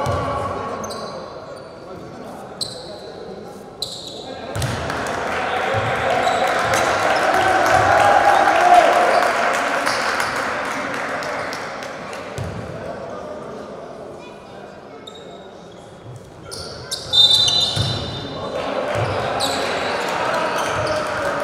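A crowd murmurs and cheers in a large echoing hall.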